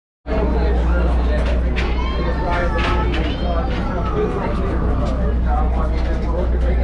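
Footsteps shuffle on a walkway.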